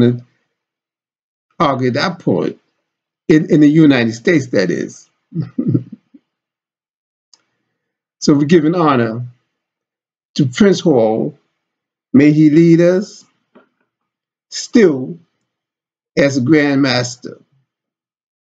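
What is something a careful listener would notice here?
An elderly man speaks calmly into a nearby microphone, in short phrases with pauses.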